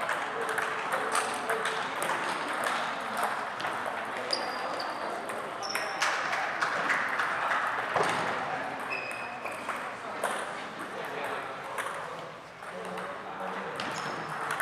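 Ping pong balls click on paddles and tables in a large echoing hall.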